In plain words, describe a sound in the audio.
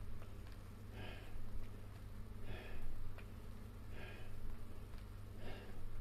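A man breathes out hard in a steady rhythm.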